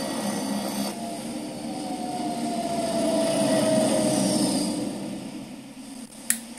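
A plane's engines roar loudly through a small loudspeaker.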